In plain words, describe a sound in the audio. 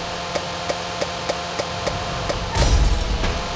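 Quick popping clicks repeat at an even pace.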